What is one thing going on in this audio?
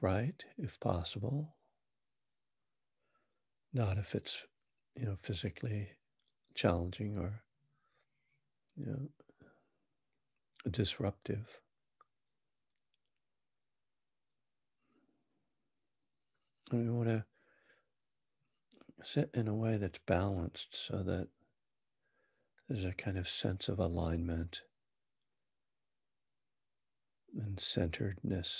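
A middle-aged man speaks calmly and closely into a microphone, with pauses.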